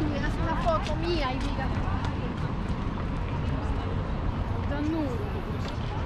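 Young women chat nearby as they walk past.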